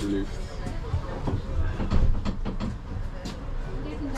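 A shopping trolley's wheels rattle on paving.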